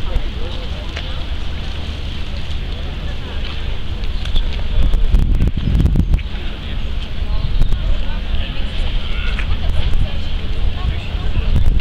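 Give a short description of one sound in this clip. A crowd of adults murmurs and chats outdoors.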